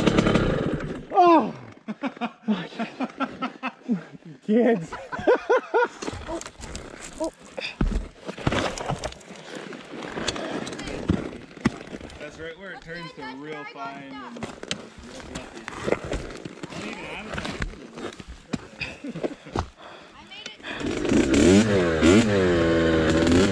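A dirt bike engine revs and sputters close by.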